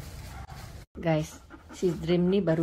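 A dog whines close by.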